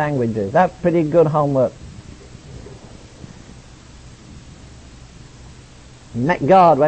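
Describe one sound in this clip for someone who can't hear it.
An elderly man preaches with animation, heard through an old recording.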